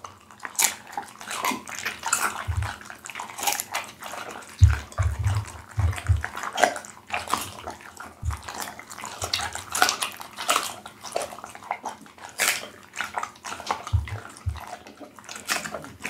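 A dog chews wetly and noisily, close to a microphone, with crunching and smacking.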